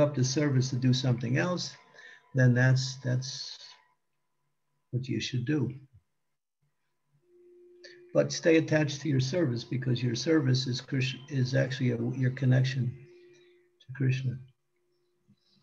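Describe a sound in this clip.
An elderly man speaks calmly through an online call, close to the microphone.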